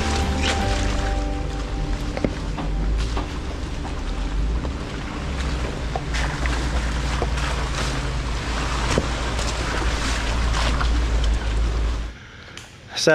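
An off-road vehicle engine rumbles low as it crawls closer.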